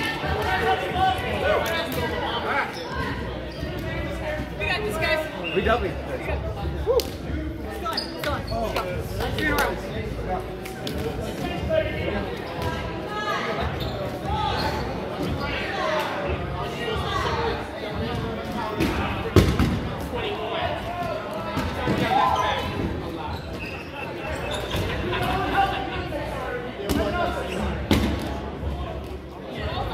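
Rubber balls bounce on a wooden floor.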